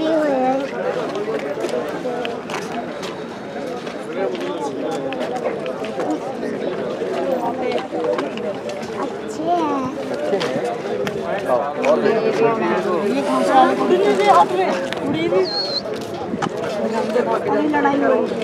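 Pigeons coo inside a cage.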